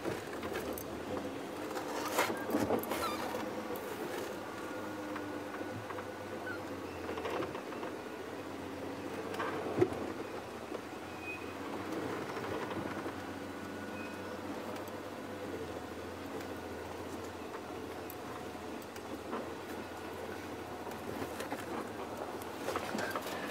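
A vehicle engine idles with a steady low rumble.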